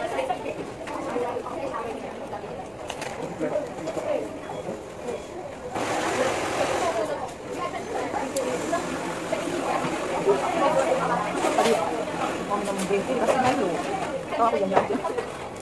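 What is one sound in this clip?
A young woman talks chattily close to the microphone.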